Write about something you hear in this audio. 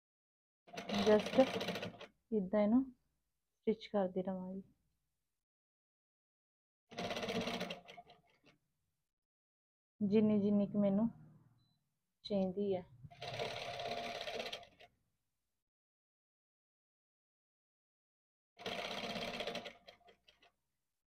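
A sewing machine stitches in short, fast bursts.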